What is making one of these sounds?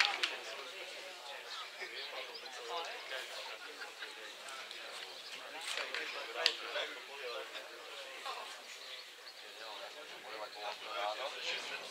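Football players call out to each other across a field.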